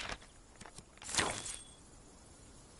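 A bright game chime rings out when an item is chosen.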